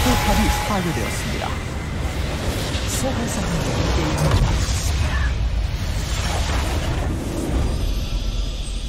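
Video game spells blast and crackle in a chaotic fight.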